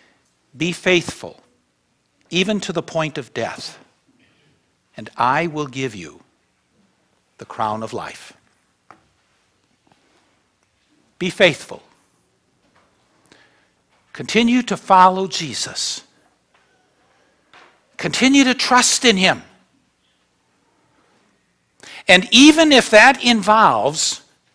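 An elderly man speaks in measured phrases with pauses, heard through a microphone.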